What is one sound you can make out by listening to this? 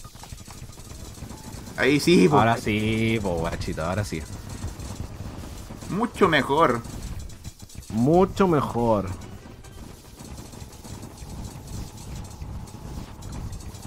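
Magic blasts crackle and burst in quick bursts.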